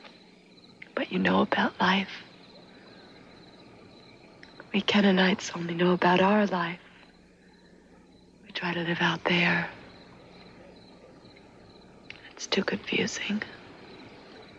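A young woman speaks softly and earnestly close by.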